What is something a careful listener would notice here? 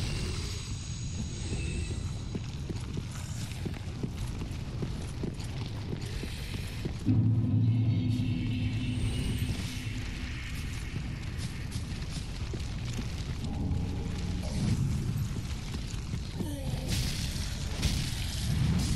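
Heavy armored footsteps clank on stone.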